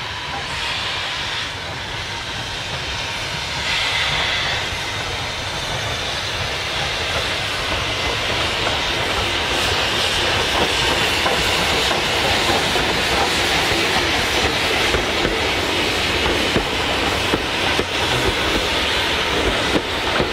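Steam locomotives chuff steadily as a train approaches and passes close by.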